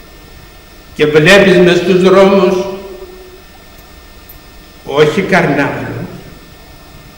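An elderly man speaks slowly and solemnly into a microphone in an echoing hall.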